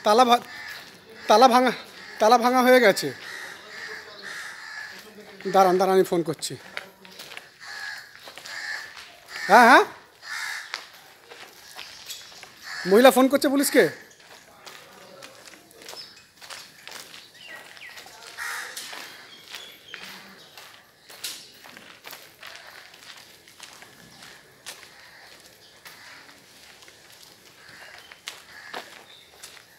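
Footsteps walk on a paved road outdoors.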